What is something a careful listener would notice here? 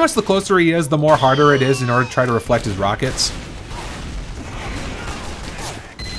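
A gun fires in rapid shots.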